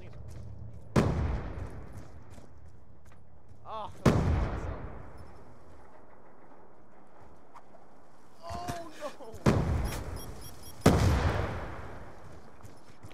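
Loud gunshots bang and echo away.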